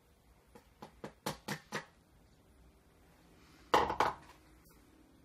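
Metal clinks against a plastic bowl.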